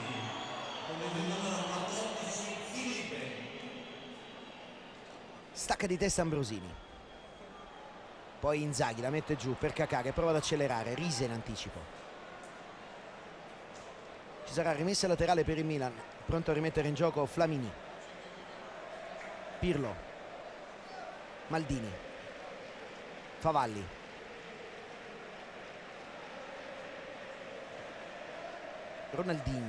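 A large crowd murmurs and chants in an open stadium.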